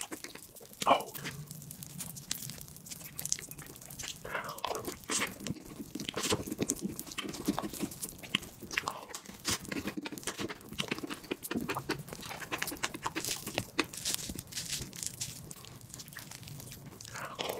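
A young man chews and smacks his lips wetly, close to a microphone.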